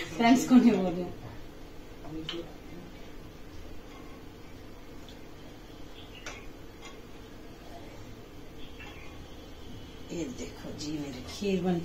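A spoon clinks and scrapes against a metal pot.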